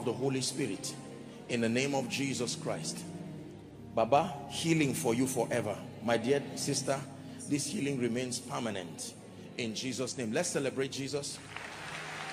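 A man speaks forcefully into a microphone, his voice echoing in a large hall.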